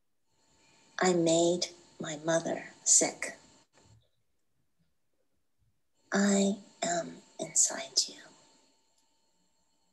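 A woman speaks calmly and expressively into a microphone, with short pauses.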